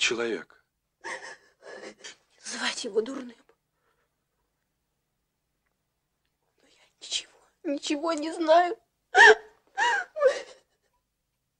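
A young woman answers in a tearful, trembling voice.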